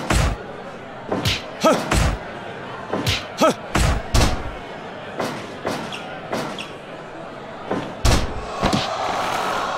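Heavy blows and body slams thud on a wrestling ring mat.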